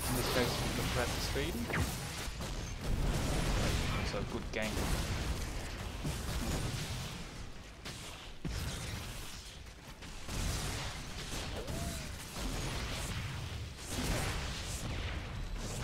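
Energy weapons zap and blast in a fast video game battle.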